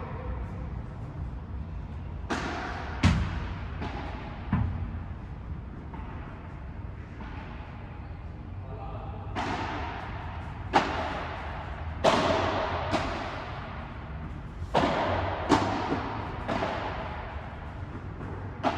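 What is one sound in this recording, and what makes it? A ball bounces on the court.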